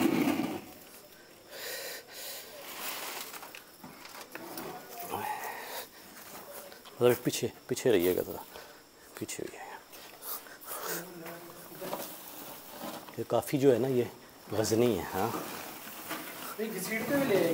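A cardboard box scrapes across a gritty concrete floor.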